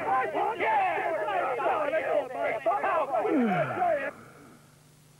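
A crowd of men chatter and grumble loudly at once.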